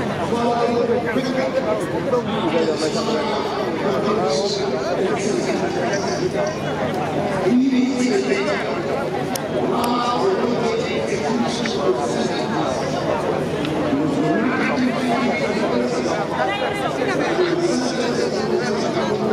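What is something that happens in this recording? A crowd of men and women chatter and talk outdoors, some voices close by.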